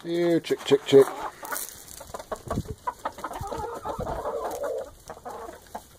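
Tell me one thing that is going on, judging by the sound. Hens cluck softly nearby.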